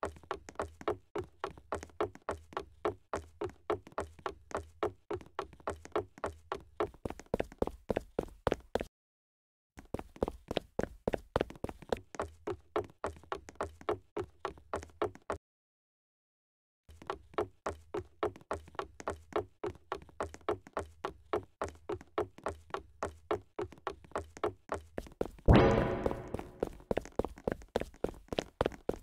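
Quick footsteps thud steadily on a wooden floor.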